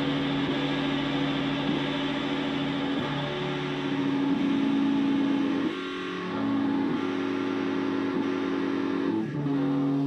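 An electric guitar plays steady sustained chords through an amplifier.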